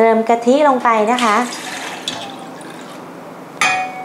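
Liquid pours into a metal pot.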